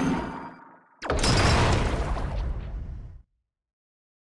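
A loud game whoosh sounds with a battle start.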